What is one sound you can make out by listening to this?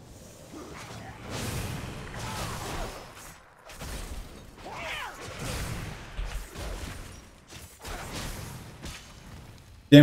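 Magic spells whoosh and shimmer during a fight.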